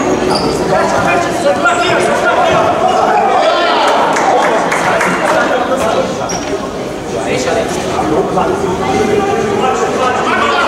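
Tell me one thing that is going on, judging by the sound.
Players shout to each other on the court.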